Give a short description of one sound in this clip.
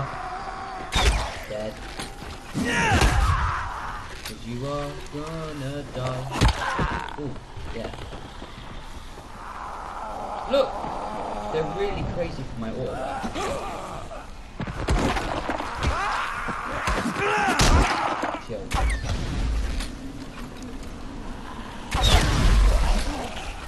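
A crossbow fires with a sharp thud.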